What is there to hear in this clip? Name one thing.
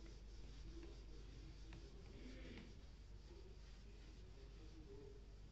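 A duster rubs and squeaks across a whiteboard.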